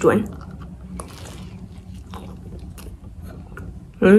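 A young woman bites into a crisp pastry and chews.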